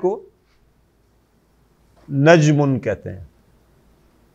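An elderly man speaks calmly, as if teaching.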